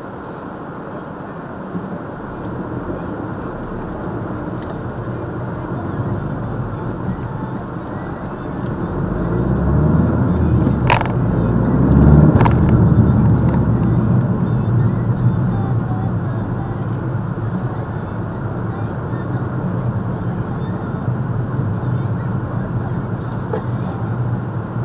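Tyres rumble on the road, growing louder for a while and then easing.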